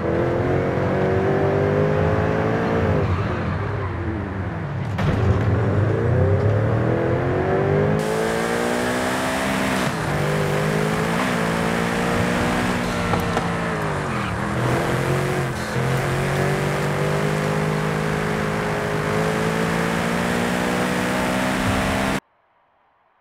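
A sports car engine roars loudly, revving up and down through gear changes.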